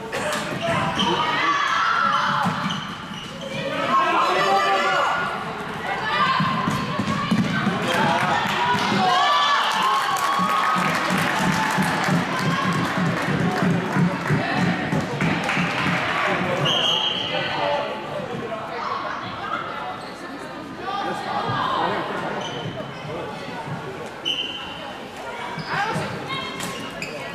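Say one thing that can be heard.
Plastic sticks clack against a ball and each other.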